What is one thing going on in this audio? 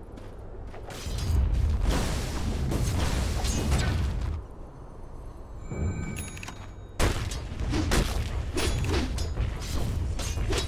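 Magic spells and weapon blows crackle and thud in a fantasy battle.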